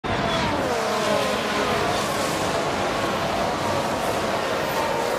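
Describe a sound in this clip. Racing car engines roar and whine at high speed.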